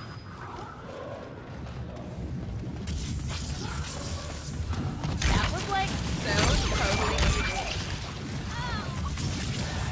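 A swirling portal whooshes and crackles.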